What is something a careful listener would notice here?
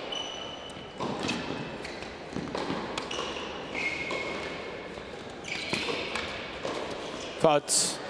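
Tennis balls are struck back and forth with sharp pops.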